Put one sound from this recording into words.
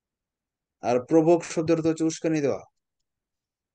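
A man speaks calmly and clearly through a microphone.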